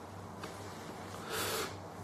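A young man exhales a breath of vapour.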